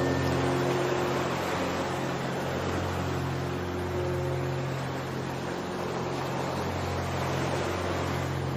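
Gentle waves lap softly on open water.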